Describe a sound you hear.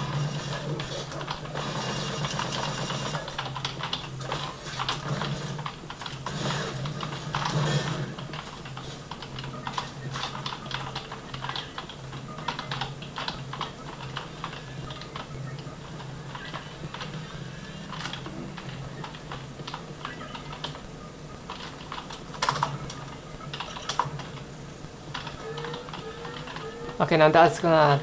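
Keys on a computer keyboard click and clatter rapidly.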